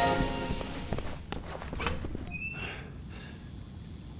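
A glass door swings open.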